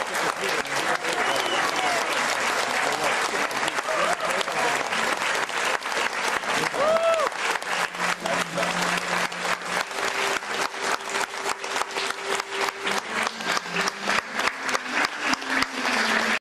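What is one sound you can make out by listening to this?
A crowd claps hands in a steady, fast rhythm.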